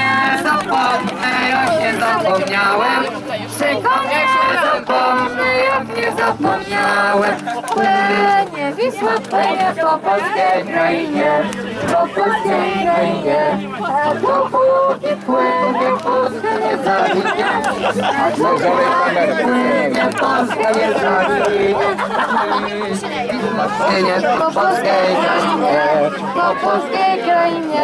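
A crowd of men and women sing together close by, outdoors.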